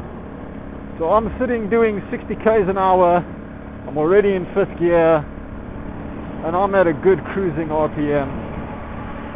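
A man speaks with animation through a helmet microphone.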